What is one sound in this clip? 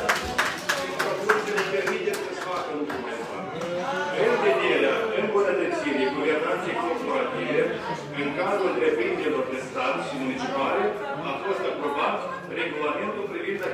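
Many people talk at once, echoing through a large hall.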